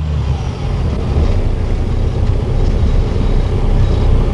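A toy train rolls along its track.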